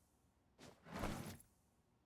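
A wooden drawer slides open with a short rattle.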